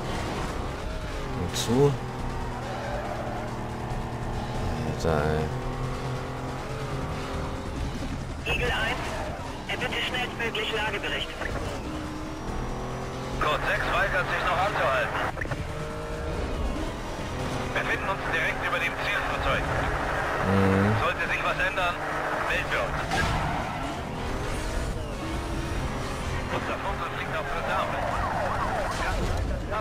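A racing car engine roars loudly at high speed, rising and falling in pitch.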